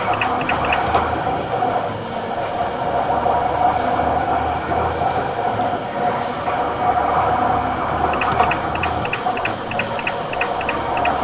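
A diesel truck engine drones at cruising speed, heard from inside the cab.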